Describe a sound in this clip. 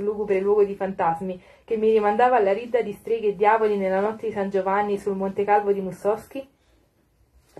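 A young woman speaks clearly into a microphone close by.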